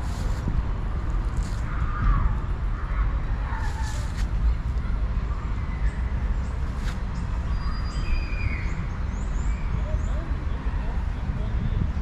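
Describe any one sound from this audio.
Wind blows steadily outdoors, rustling tree leaves.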